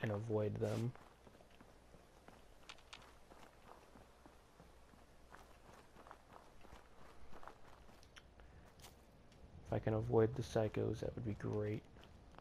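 Footsteps crunch softly over dry ground.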